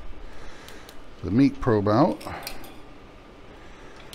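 Metal tongs clink against a metal lid.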